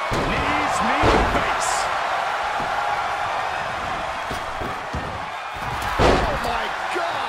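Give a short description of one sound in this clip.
Heavy thuds of bodies slam onto a wrestling ring.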